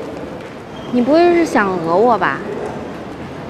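A young woman speaks nearby with a rising, questioning tone.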